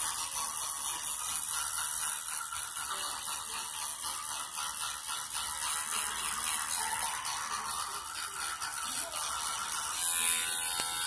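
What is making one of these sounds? A child brushes teeth with a toothbrush.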